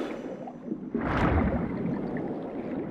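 A sword swishes sharply through water.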